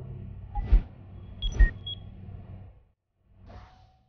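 Menu buttons click with short electronic beeps.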